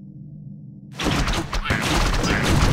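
Weapons clash loudly in a battle.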